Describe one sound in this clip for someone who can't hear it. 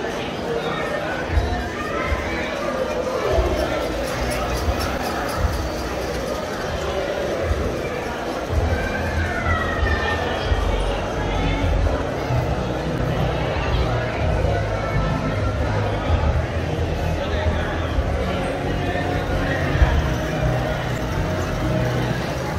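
A crowd murmurs in a large indoor hall.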